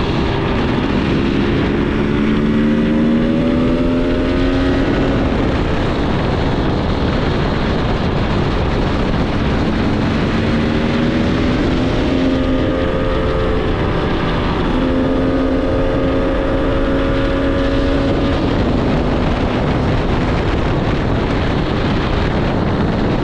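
A motorcycle engine hums and revs up and down.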